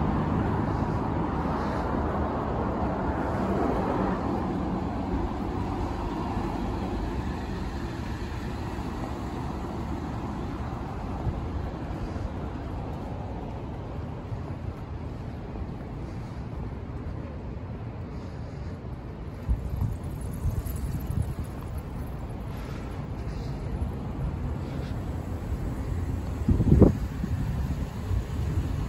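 Traffic rumbles steadily nearby, louder at first and then easing off.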